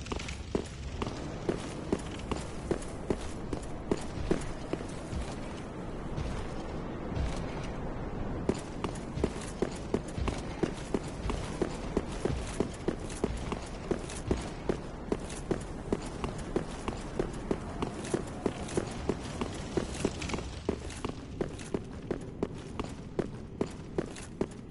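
Armored footsteps clank steadily on stone.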